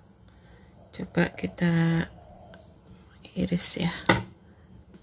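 A plastic spatula scrapes and squeaks against the side of a metal baking pan.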